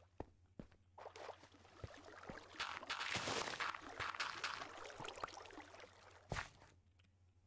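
Dirt crunches as blocks are dug away.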